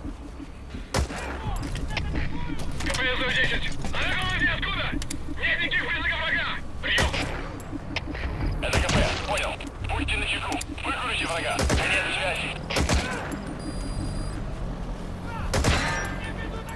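Gunshots crack sharply several times.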